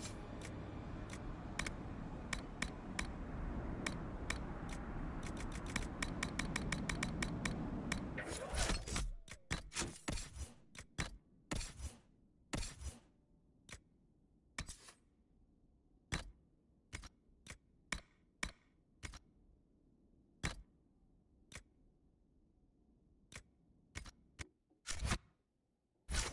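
Short menu clicks tick again and again as selections change.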